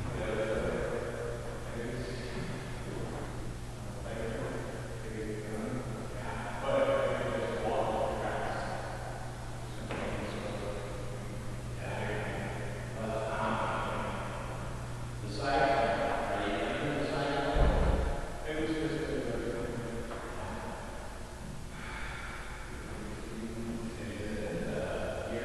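An elderly man answers calmly in a large echoing room.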